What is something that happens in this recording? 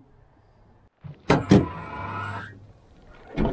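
A truck tailgate drops open with a clunk.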